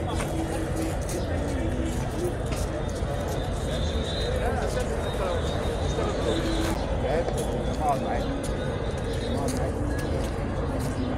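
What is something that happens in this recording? Voices of passers-by chatter nearby.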